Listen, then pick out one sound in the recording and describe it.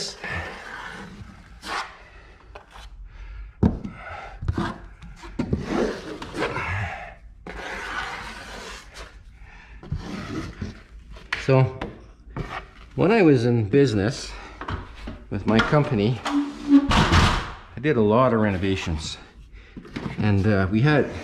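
A putty knife scrapes across a wall.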